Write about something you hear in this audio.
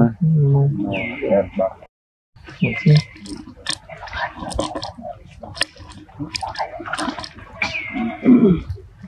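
A young monkey squeals in short, high cries.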